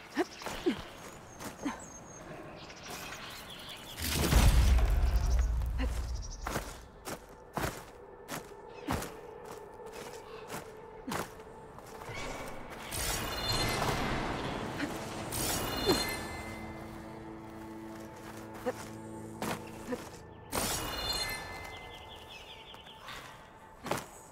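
Hands and feet scrape and knock on rock during climbing.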